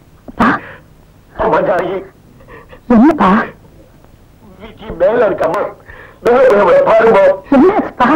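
A man speaks in a low, pleading voice.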